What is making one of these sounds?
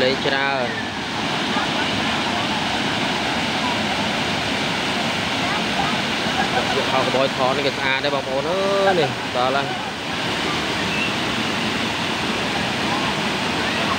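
A waterfall roars steadily outdoors.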